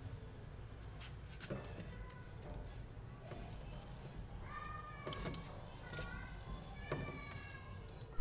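Plastic parts click and creak as they are handled.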